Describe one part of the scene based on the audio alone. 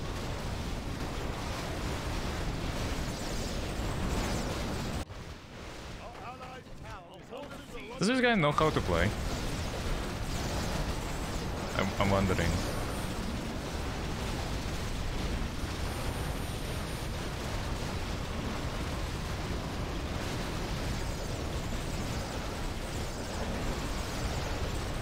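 Game battle sounds clash and crackle throughout.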